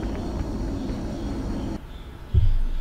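A jet craft's engines roar steadily.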